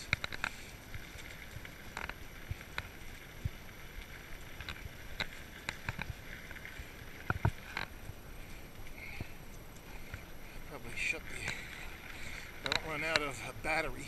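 Bicycle tyres roll and rattle over a bumpy dirt trail.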